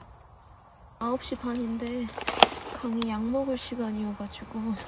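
A young woman speaks in a bright, sing-song voice close by.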